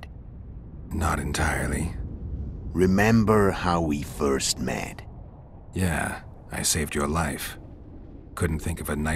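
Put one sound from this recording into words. A man speaks in a deep, calm voice close by.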